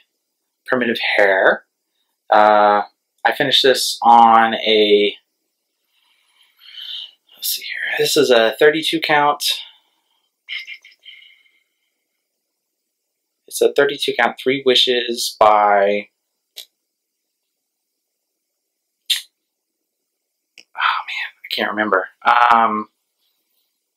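A young man talks close to a microphone, in short expressive bursts.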